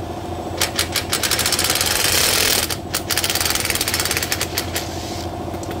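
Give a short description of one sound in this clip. A cordless impact wrench rattles in loud bursts.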